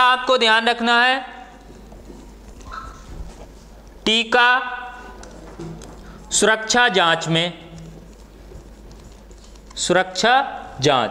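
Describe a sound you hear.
A man speaks loudly and with emphasis, in short bursts.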